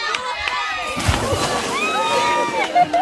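A bicycle and rider crash into water with a loud splash.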